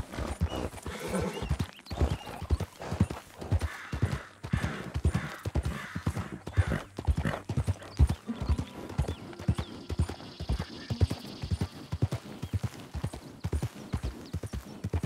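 Horse hooves thud steadily on a dirt path.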